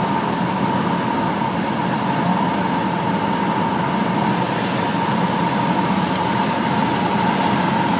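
A small plane's propeller engine drones loudly and steadily from inside the cockpit.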